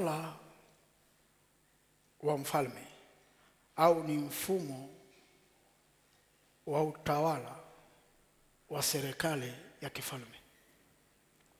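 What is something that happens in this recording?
A man preaches with energy into a headset microphone, in loud bursts with pauses, in a reverberant hall.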